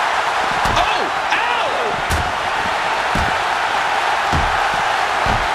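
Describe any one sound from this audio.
Heavy blows land with dull thuds between two wrestlers.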